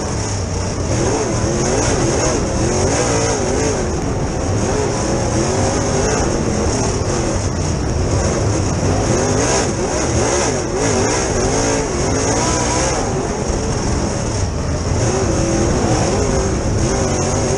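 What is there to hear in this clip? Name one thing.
Other race cars roar past nearby.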